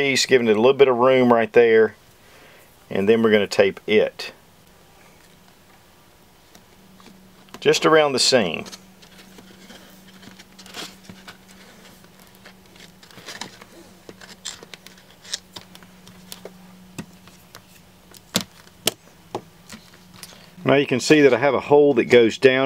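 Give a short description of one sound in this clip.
A plastic bottle crinkles and taps as it is handled.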